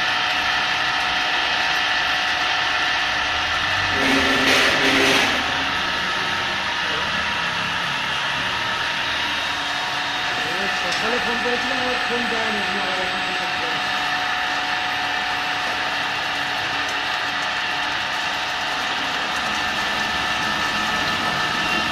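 A milling machine whirs steadily as its cutter grinds through metal.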